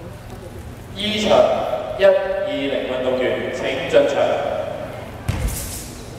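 People in a crowd talk in a large echoing hall.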